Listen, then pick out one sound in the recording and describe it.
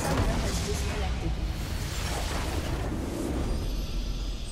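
A huge game explosion booms and crackles.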